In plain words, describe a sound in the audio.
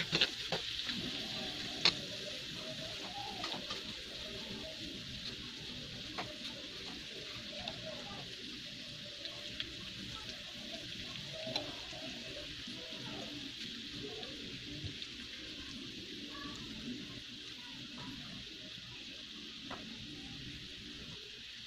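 Food sizzles steadily in hot oil in a pan.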